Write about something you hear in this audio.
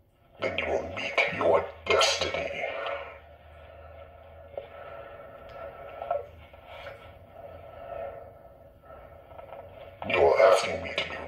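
A man speaks close up in a deep, muffled voice.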